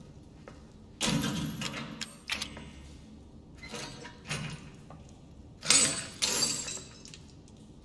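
Bolt cutters snap through a metal chain.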